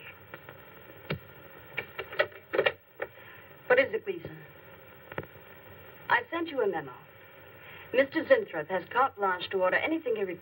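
A woman speaks calmly into a telephone, close by.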